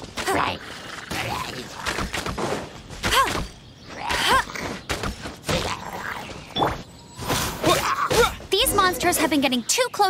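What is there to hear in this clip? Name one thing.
Quick whooshing strikes and sharp hits crackle in a fight.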